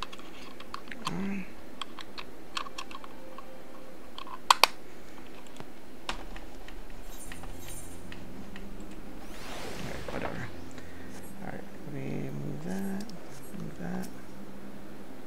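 A man speaks quietly and briefly into a close microphone.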